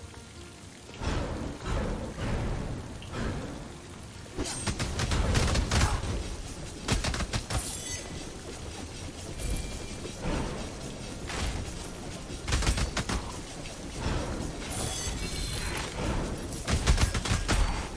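Blades swish and slash through the air in quick bursts.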